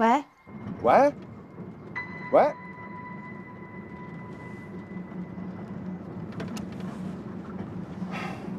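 A van's engine hums steadily.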